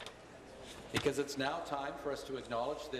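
A man speaks loudly and firmly through a microphone.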